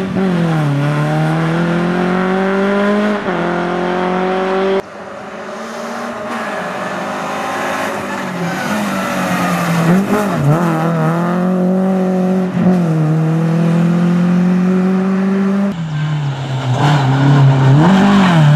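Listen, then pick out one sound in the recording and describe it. Tyres crunch and skid on a gravel road.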